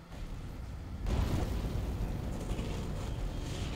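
An explosion booms with a deep roar.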